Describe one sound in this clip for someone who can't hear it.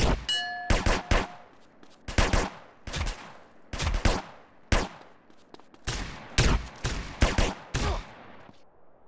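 Pistol shots ring out in quick bursts, each with a short echoing tail.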